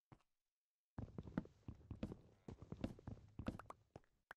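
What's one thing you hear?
An axe chops at wood with rapid, repeated knocks.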